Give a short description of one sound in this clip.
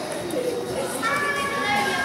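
A young girl speaks up loudly.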